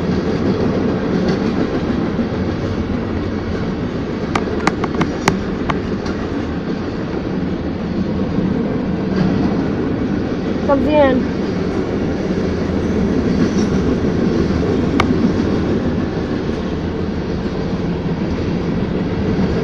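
A freight train rumbles past fast at close range.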